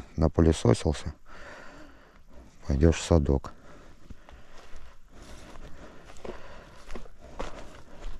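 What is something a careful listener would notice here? Grass and twigs rustle as a fish is handled.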